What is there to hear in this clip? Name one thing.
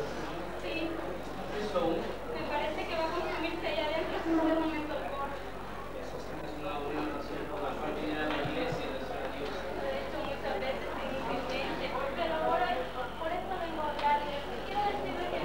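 A young woman answers a man in a quiet voice.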